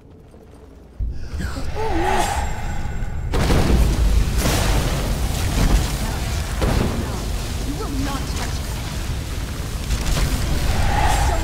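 Magic spells crackle and roar loudly.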